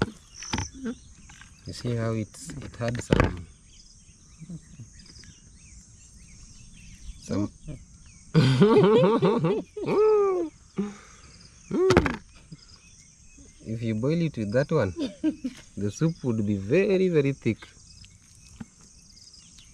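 A knife cuts through raw chicken.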